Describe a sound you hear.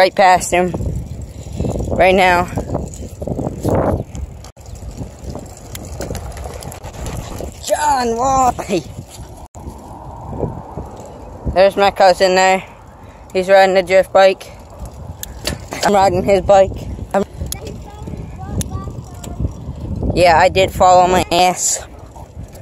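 Bicycle tyres roll over asphalt with a low rumble.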